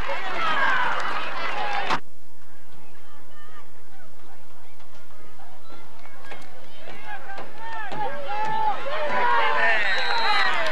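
A crowd of adults and children shouts and cheers outdoors.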